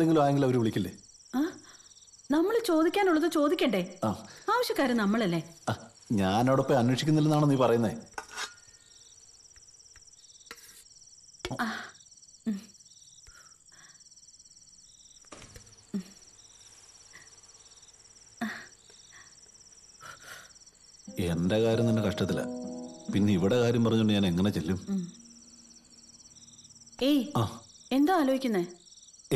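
A young woman speaks nearby with animation.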